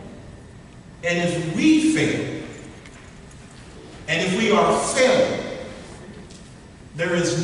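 A man speaks into a microphone with emphasis, in a room with slight echo.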